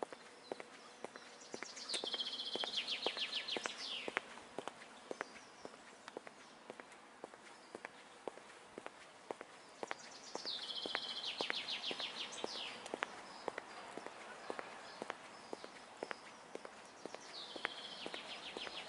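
Footsteps tap steadily on a paved path outdoors.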